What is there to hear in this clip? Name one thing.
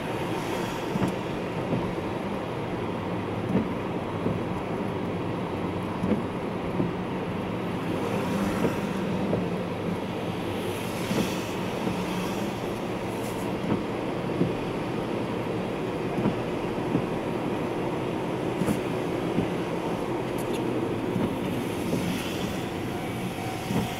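A car drives, heard from inside the cabin.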